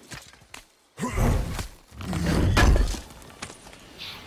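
A heavy chest lid opens with a loud, deep rumble.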